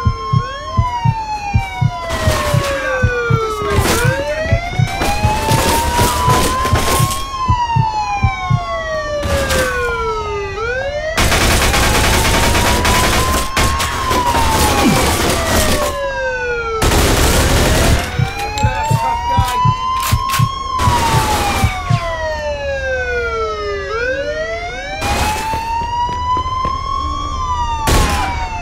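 A police siren wails steadily, rising and falling.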